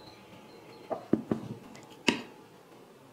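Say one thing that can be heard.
A knife taps on a wooden board.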